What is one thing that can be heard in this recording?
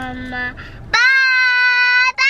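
A young girl shouts loudly in a high voice.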